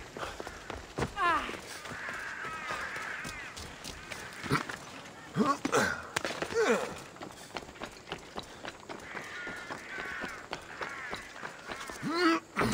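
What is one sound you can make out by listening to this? Footsteps patter quickly on stone and roof tiles.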